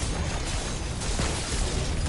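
An energy blast bursts with a loud whoosh.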